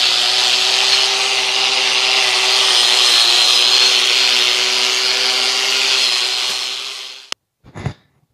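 A power tool whines loudly and steadily, then stops.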